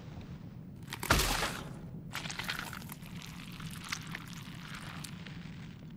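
A flame crackles and hisses.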